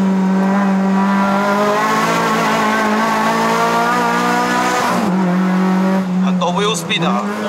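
A car engine hums steadily at high revs.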